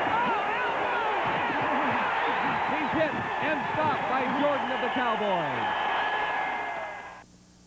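A stadium crowd cheers.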